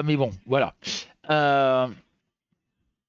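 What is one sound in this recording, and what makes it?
A middle-aged man speaks into a headset microphone with animation, ending on a drawn-out word.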